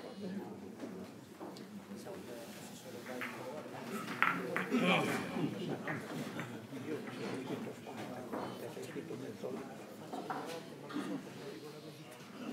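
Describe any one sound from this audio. Billiard balls click sharply against each other.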